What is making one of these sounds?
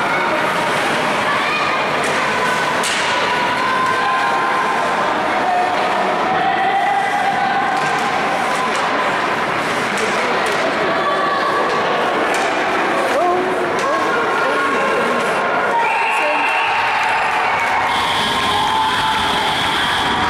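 Skates scrape and carve across ice.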